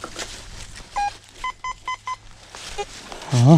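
A metal detector beeps in short tones.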